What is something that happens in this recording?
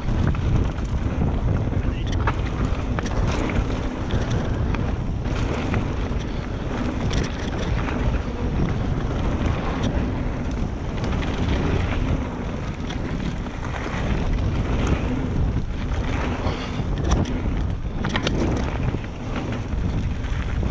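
Bicycle tyres crunch and rattle over loose stones and gravel.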